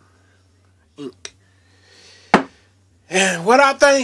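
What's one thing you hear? A glass bottle is set down on a hard surface with a knock.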